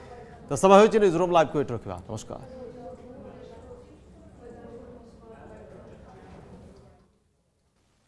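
A man speaks calmly to the listener, close to the microphone.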